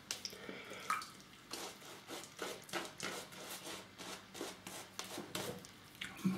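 A razor scrapes through shaving foam in short strokes.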